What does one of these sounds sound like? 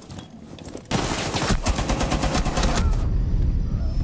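Gunshots rattle in a rapid, loud burst.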